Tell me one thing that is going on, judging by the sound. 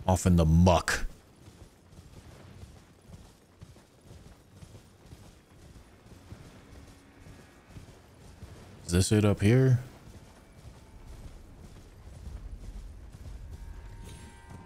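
A horse's hooves thud steadily as it gallops.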